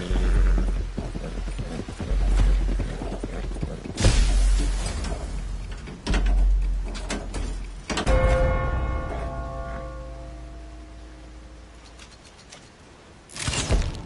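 Explosions boom one after another and rumble away.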